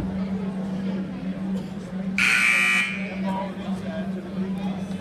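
A man talks calmly to a huddled group in a large echoing hall.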